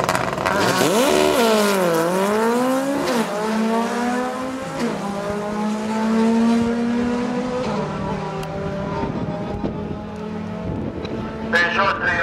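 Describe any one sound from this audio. Drag racing cars accelerate hard, climbing through the gears and fading into the distance.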